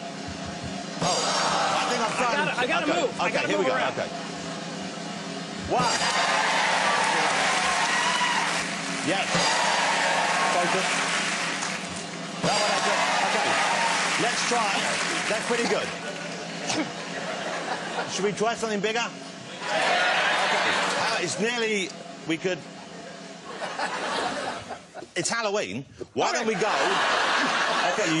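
A studio audience laughs loudly and cheers.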